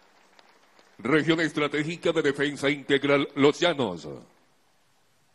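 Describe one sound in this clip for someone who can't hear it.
A group of men chants together in unison.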